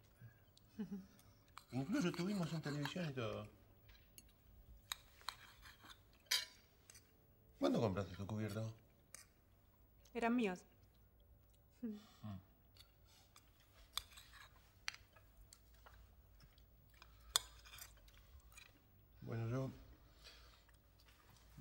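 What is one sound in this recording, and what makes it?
Forks and knives clink against plates.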